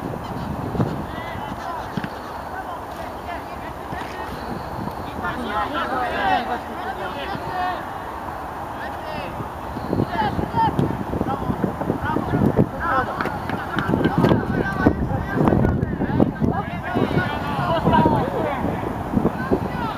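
Teenage boys shout and call to each other at a distance outdoors.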